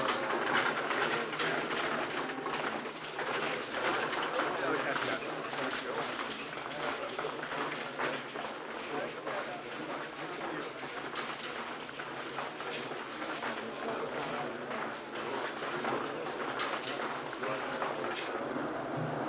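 Many footsteps clatter on a hard floor in an echoing hall.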